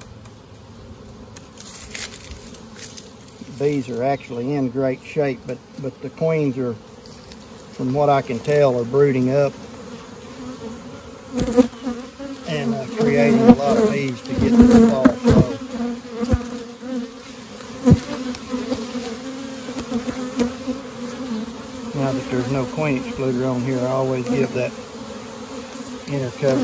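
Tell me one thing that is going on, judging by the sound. Bees buzz around an open hive.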